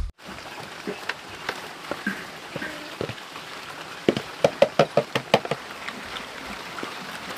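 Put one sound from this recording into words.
Dogs eat noisily, lapping and chewing food from a bowl.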